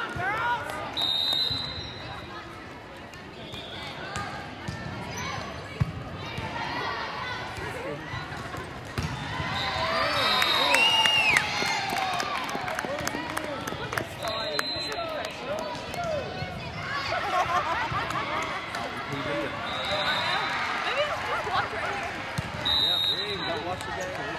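A referee's whistle blows sharply several times.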